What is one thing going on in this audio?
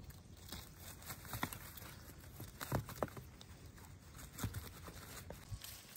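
Sticks clatter and knock against each other.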